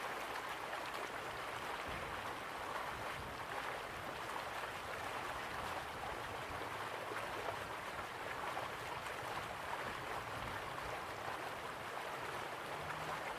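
A waterfall roars steadily.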